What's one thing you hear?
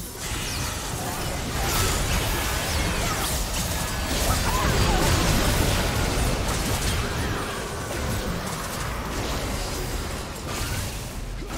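Video game spell effects blast and crackle during a fight.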